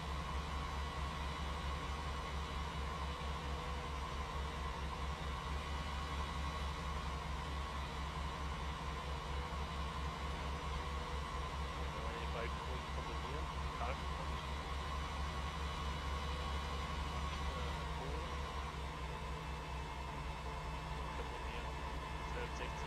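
A tractor engine drones steadily at a constant speed.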